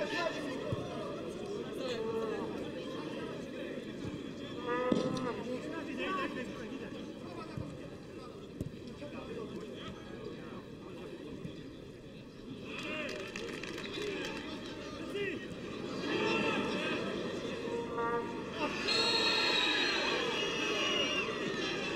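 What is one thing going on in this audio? A football crowd murmurs and chants in an open-air stadium.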